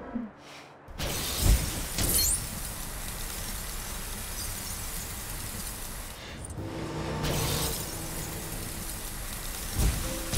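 An ice beam sprays with a loud, steady hiss.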